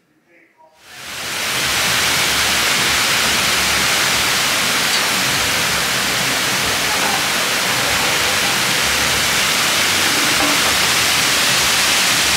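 Water rushes and splashes steadily over a waterfall into a pool.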